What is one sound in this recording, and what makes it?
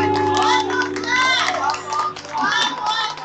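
A keyboard plays sustained notes.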